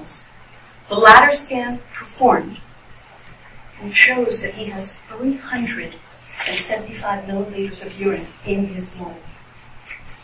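A woman speaks calmly at a distance in a room with some echo.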